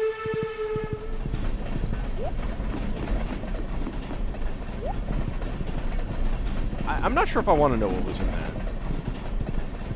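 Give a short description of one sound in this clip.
A train rumbles steadily past.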